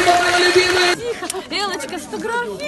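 A woman speaks close by, cheerfully.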